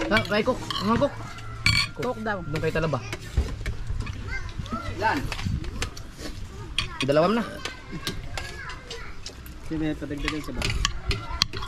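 Men talk casually close by, outdoors.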